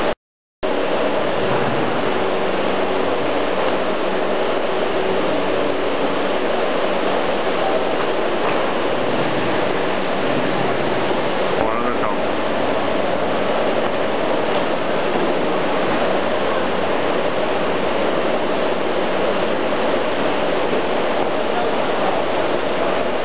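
Loose scraps rustle as hands push them down a chute.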